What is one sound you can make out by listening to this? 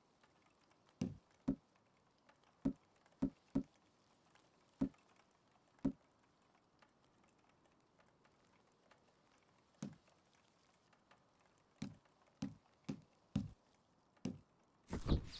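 Soft menu clicks tick now and then as a selection moves around a wheel.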